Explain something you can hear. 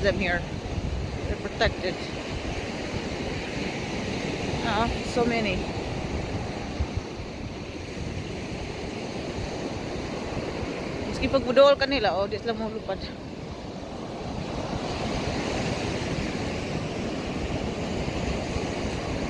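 Waves wash steadily onto the shore.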